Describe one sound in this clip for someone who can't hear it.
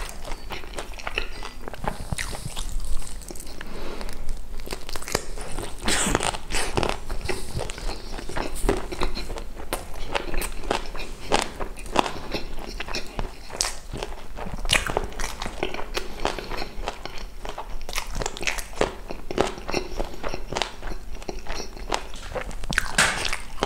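Crispy batter crackles as a piece of chicken is torn apart.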